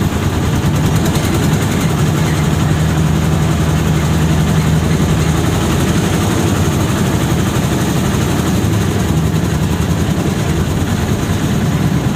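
Wind rushes in through an open window of a moving vehicle.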